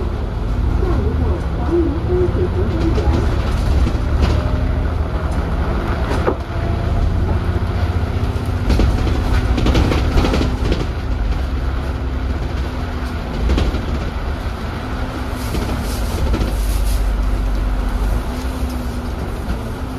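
Heavy rain patters on the road and the bus.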